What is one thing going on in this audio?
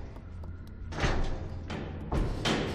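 A barred gate bangs shut.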